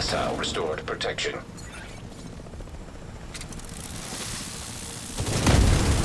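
A helicopter's rotor thuds overhead.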